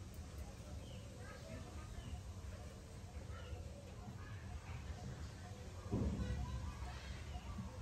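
A baby monkey suckles softly.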